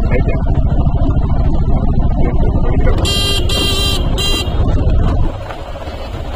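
A small vehicle's engine rumbles steadily close by.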